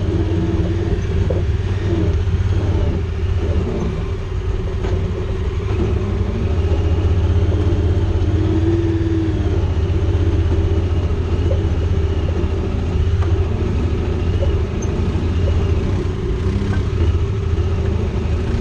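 The vehicle's frame creaks and rattles over bumps.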